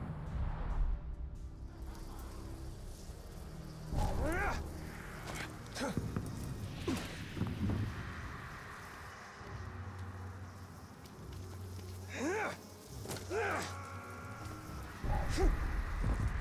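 Footsteps run and scrape on stone.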